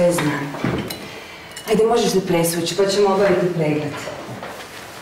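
A middle-aged woman speaks with animation close by.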